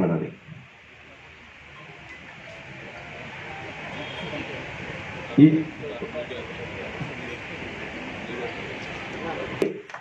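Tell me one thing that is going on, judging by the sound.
A man speaks into a microphone over a loudspeaker, addressing a gathering with animation.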